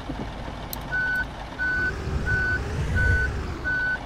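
A bus reversing alarm beeps at an even pace.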